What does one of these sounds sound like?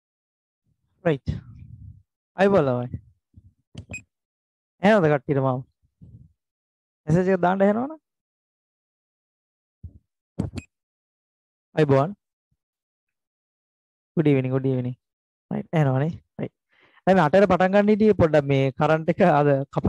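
A man speaks with animation into a headset microphone, heard through an online call.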